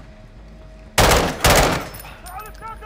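A rifle fires rapid shots in a burst.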